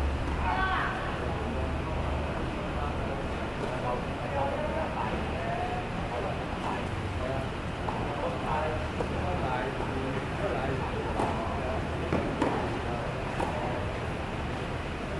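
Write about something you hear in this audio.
Men call out to each other in the distance.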